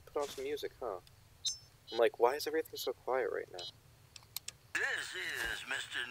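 A handheld device clicks and beeps as its menu is paged through.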